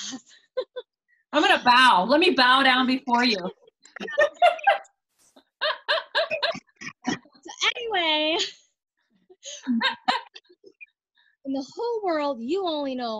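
Several women talk and laugh with animation over an online call.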